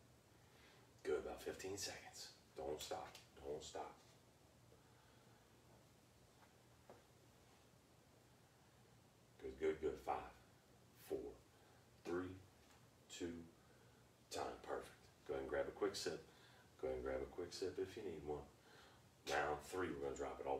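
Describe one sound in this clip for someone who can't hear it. A man talks calmly to the listener, with pauses.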